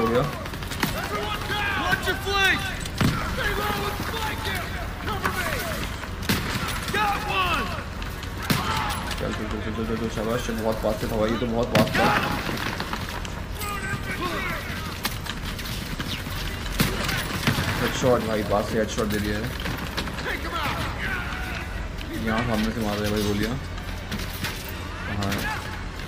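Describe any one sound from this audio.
Gunfire cracks in sharp bursts.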